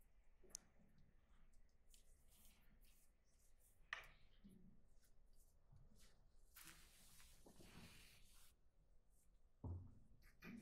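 People shift and rustle quietly.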